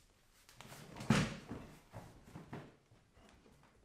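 An office chair creaks and thumps as a man sits down on it.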